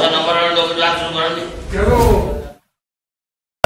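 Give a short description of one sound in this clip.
An elderly man speaks loudly through a microphone.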